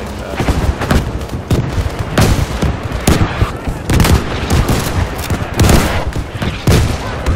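Rifle shots crack loudly and close by, again and again.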